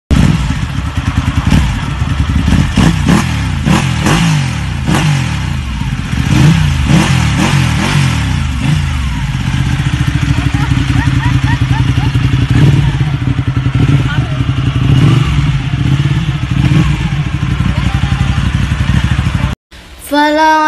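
A motorcycle engine idles and revs loudly.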